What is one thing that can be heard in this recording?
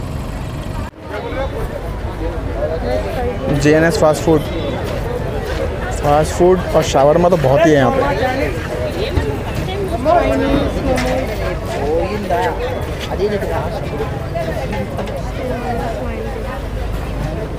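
Men and women chatter nearby in a busy open-air crowd.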